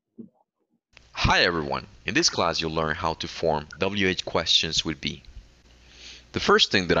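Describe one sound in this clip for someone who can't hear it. A man speaks clearly through a recorded lesson's loudspeaker audio.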